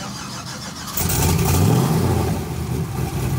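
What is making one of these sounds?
A truck engine starts with a roar and revs up.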